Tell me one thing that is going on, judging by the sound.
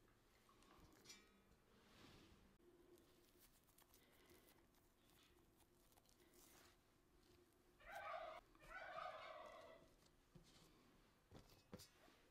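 Pastry dough is set down on a metal baking pan with soft taps.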